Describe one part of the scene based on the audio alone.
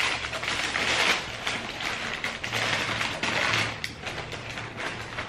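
Tissue paper rustles and crinkles close by.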